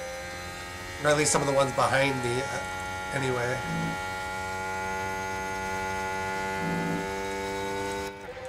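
A racing car engine whines steadily.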